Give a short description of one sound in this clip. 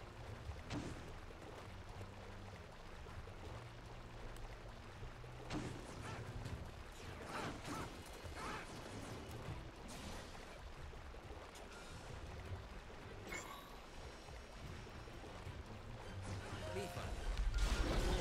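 Swords clash and strike in a game battle.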